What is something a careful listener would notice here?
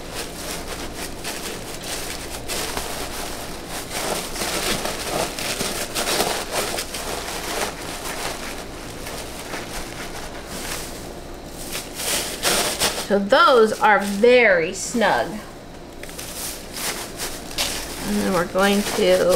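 Hands rustle and crinkle shredded paper packing close by.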